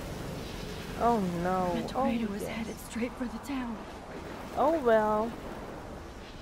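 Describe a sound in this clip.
A young woman speaks tensely and quietly.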